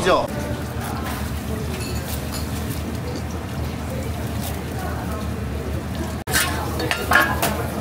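Hot oil bubbles and crackles in a deep fryer.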